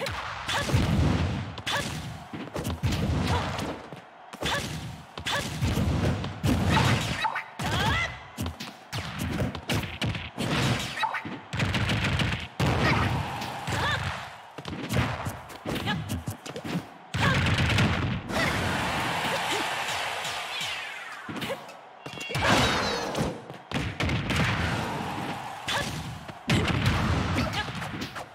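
Explosions and hits burst again and again in a fast fighting game.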